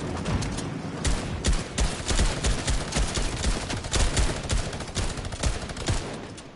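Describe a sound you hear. A gun fires in rapid bursts of sharp shots.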